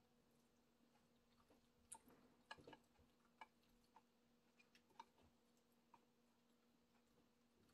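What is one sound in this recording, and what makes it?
A woman chews food close by with soft, wet mouth sounds.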